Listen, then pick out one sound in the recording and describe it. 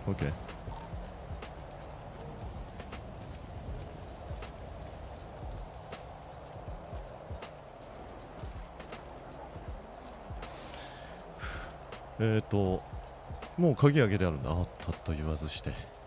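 Footsteps tap on pavement and stone steps.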